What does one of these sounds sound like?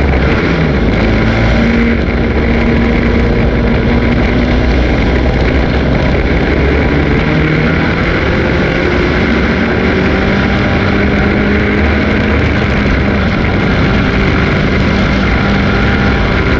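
A dirt track race car engine roars at full throttle, heard from inside the cockpit.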